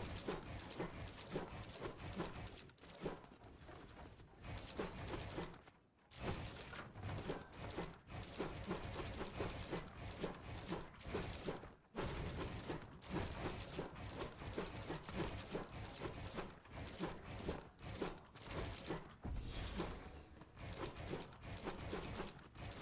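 Game building pieces clack and snap into place in quick succession.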